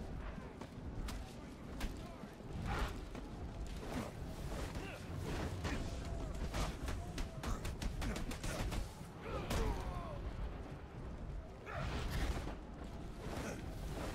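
Punches and kicks land with heavy thuds again and again.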